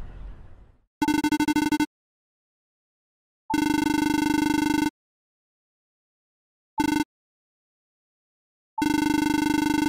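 Rapid pitched electronic beeps chatter in short bursts.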